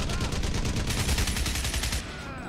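A gun fires in a rapid burst.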